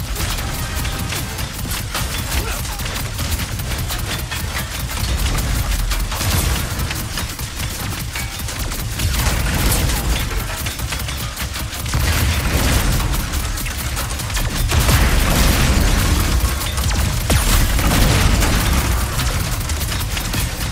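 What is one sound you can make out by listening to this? Rapid gunfire crackles and pops without pause.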